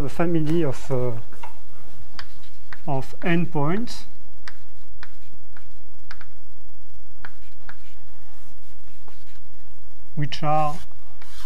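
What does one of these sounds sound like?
A man speaks calmly in a lecture voice, pausing between phrases.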